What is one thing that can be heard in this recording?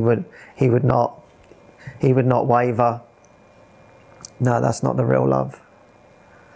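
A man speaks calmly and close to a microphone, in short phrases.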